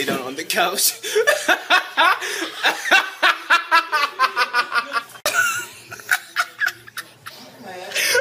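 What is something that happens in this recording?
A young man laughs loudly close to a phone microphone.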